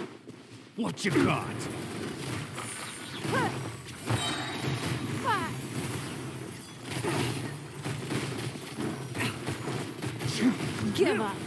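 Game combat sounds with clashing hits and magical bursts ring out rapidly.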